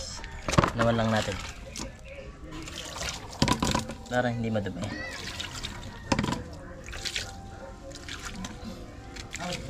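Water splashes from a dipper.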